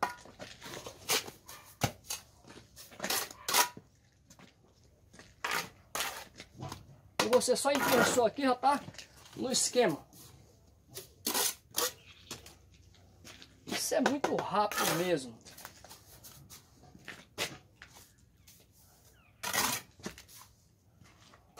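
A trowel scrapes and taps against bricks.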